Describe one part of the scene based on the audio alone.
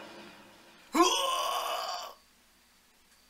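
A cartoon punch lands with a loud crashing hit.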